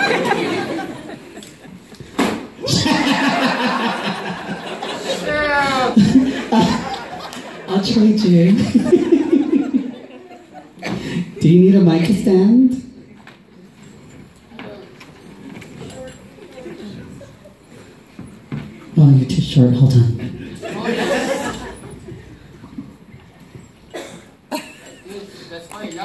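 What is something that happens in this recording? A woman speaks with animation into a microphone, heard through loudspeakers in an echoing hall.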